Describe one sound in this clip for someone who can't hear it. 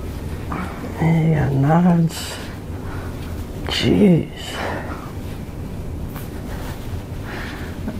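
A young woman cries out and laughs close by.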